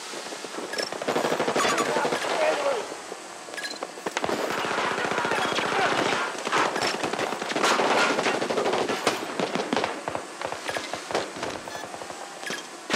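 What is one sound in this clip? A heavy cannon fires in rapid bursts with loud booming impacts.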